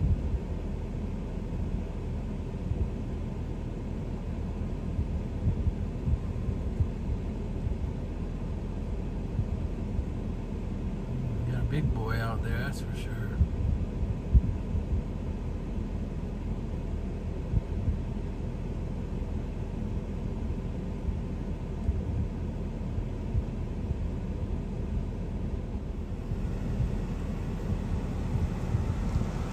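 A vehicle engine idles nearby with a low rumble.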